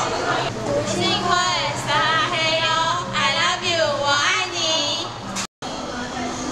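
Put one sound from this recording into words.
Two young women shout together through a small megaphone.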